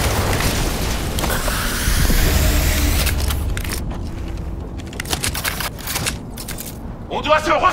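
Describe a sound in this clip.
A gun clicks and clatters as it is reloaded.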